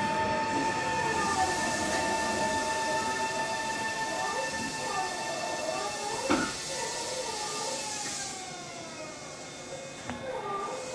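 A stopped electric train hums steadily while idling.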